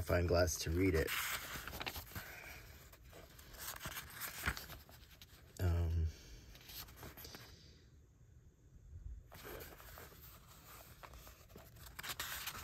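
Paper pages riffle and rustle as a book is flipped through.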